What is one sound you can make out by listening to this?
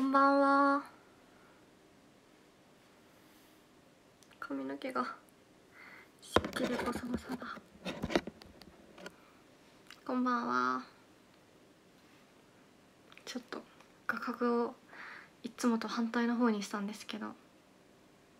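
A young woman speaks softly and playfully in short bursts, close to a microphone.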